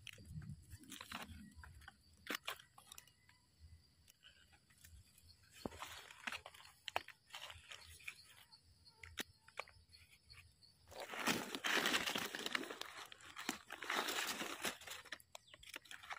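A knife scrapes against a mushroom stem.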